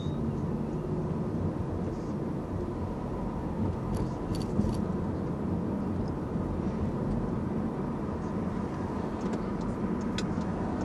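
A car engine hums steadily from inside the car as it drives along a street.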